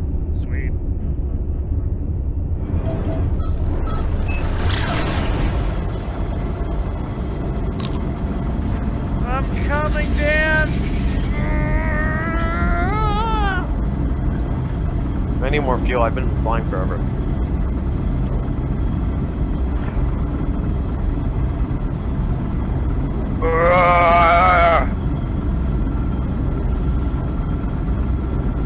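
A spaceship engine rumbles low and steady.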